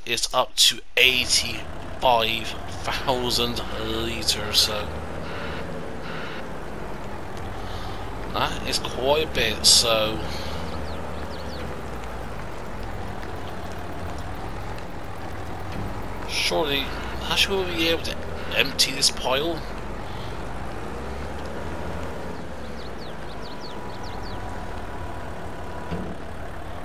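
A heavy loader's diesel engine rumbles steadily.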